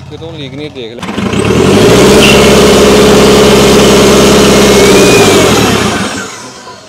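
A tractor engine revs hard and roars loudly, then drops back.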